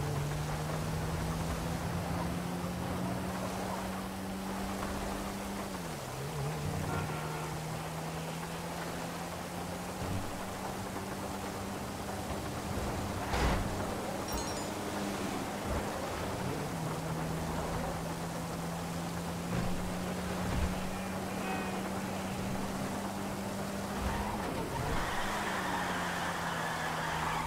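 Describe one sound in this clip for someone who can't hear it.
Rain hisses steadily on a wet road.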